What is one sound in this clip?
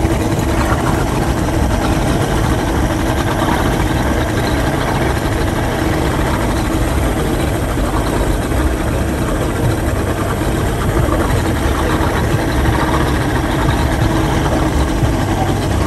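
Water rushes and splashes against a moving hull.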